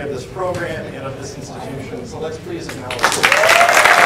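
A man speaks into a microphone to an audience.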